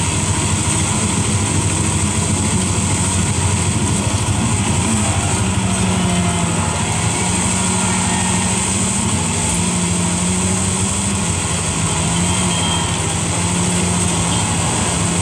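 A racing car engine roars steadily through a loudspeaker, its pitch shifting as it speeds up and slows down.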